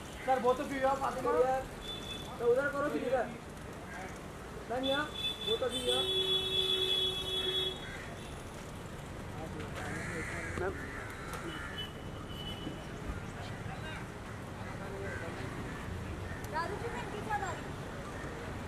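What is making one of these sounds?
Men call out and talk loudly nearby.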